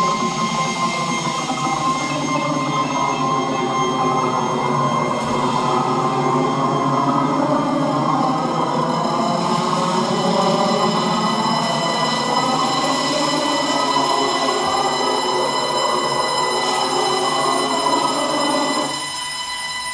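A dense, buzzing layer of sound plays over loudspeakers and suddenly cuts out.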